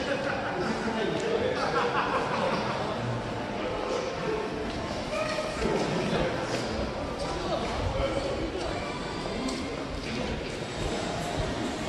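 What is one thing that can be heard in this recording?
A crowd of people chatters in the distance in a large echoing space.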